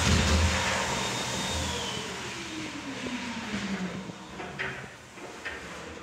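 A toilet flushes loudly, water rushing and swirling down the bowl.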